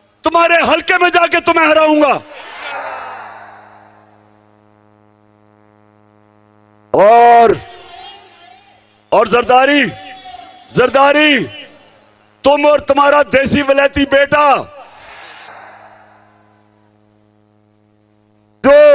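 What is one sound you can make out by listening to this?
A man speaks forcefully into a microphone over a loudspeaker, echoing outdoors.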